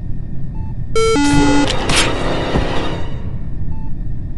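A loud slashing sound effect strikes with a brief burst of noise.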